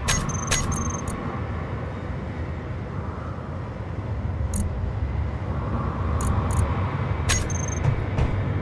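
Short electronic beeps sound as menu items are picked.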